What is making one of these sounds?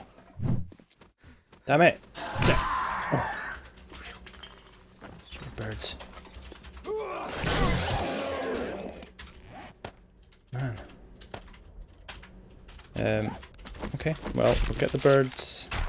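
A zombie snarls and shrieks.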